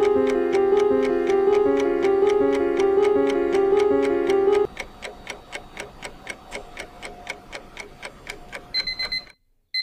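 A timer ticks steadily.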